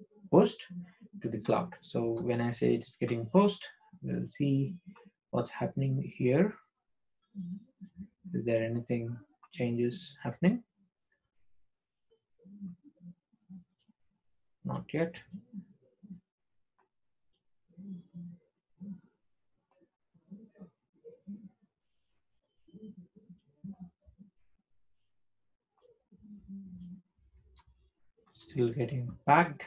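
A man talks calmly into a microphone, with pauses.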